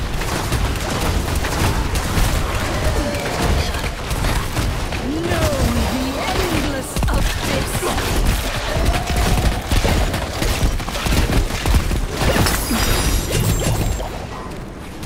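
Magic blasts crackle and boom in a noisy fight.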